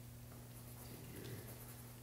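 A paintbrush dabs softly against a canvas.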